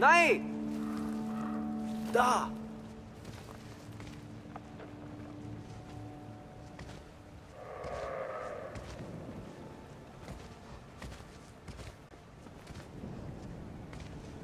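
Footsteps patter softly on dirt.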